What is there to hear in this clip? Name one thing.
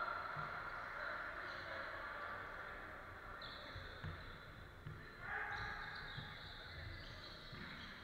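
A basketball bounces on the wooden floor.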